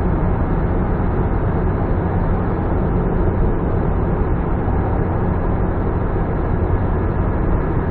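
A car's engine and tyres roar steadily inside a tunnel.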